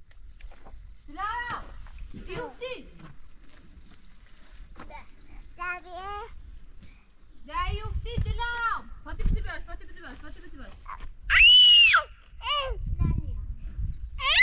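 A young child calls out in a high voice nearby, outdoors.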